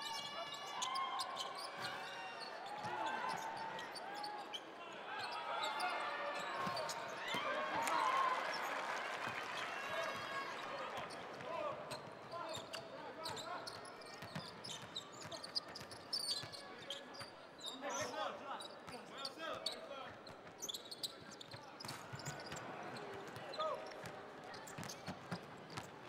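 Basketball sneakers squeak on a hardwood court.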